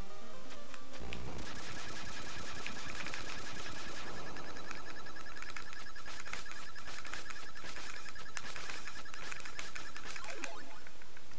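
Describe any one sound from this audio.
Game explosions burst and crackle repeatedly.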